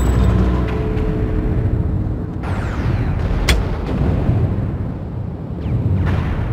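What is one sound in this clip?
Heavy gunfire and explosions rumble steadily in a battle.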